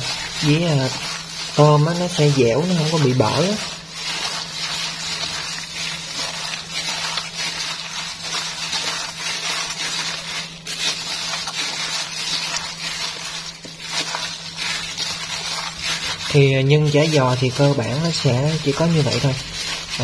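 A gloved hand squishes and squelches wet food as it mixes it in a metal bowl.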